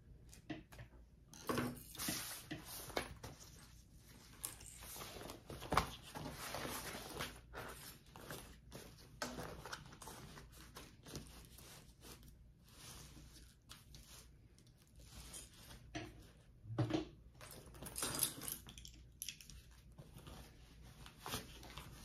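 Fabric rustles and crinkles as hands handle it.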